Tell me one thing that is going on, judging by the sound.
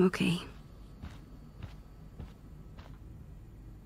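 Footsteps tread softly across a floor.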